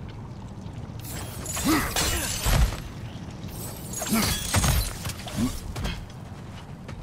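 Hands and boots scrape and thud on rock during a climb.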